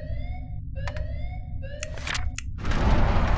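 Short rising electronic beeps sound from a keypad.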